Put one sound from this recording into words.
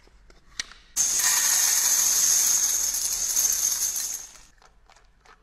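Metal flakes rattle and hiss as they shift in trays.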